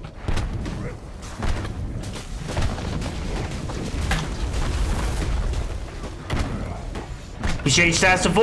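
Heavy blows and magical blasts crash and thud in a fight.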